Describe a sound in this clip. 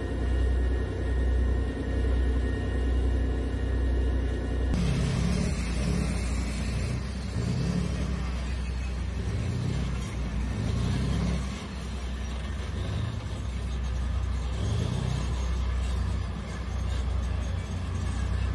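A heavy tank engine rumbles loudly nearby.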